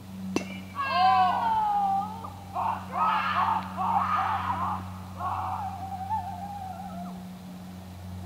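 Young children shout and call out in the distance outdoors.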